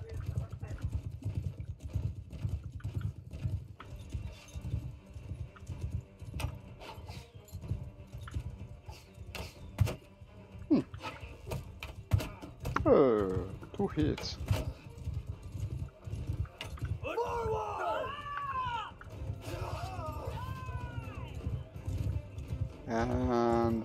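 Horse hooves pound rapidly on the ground.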